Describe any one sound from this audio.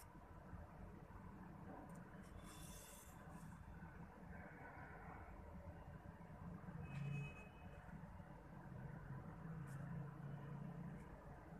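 Thread rustles softly as a needle pulls it through cloth.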